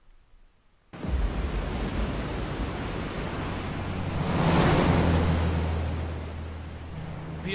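Wind roars over stormy sea, swelling and fading.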